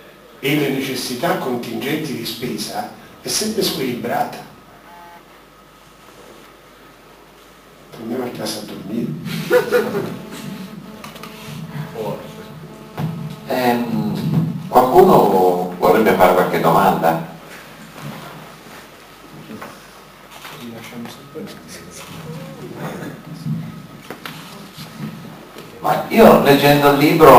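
An elderly man speaks calmly into a microphone, heard through a loudspeaker in an echoing hall.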